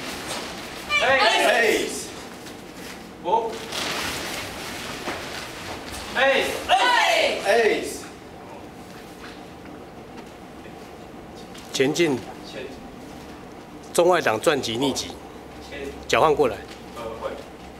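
A group of children and young people shout together in short loud bursts in an echoing hall.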